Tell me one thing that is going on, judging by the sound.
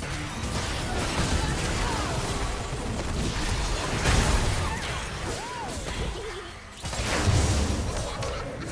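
Magic spells crackle and blast in a fast video game battle.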